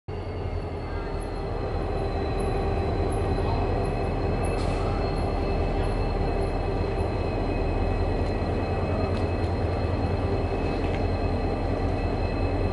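A diesel locomotive engine rumbles deeply as a train approaches.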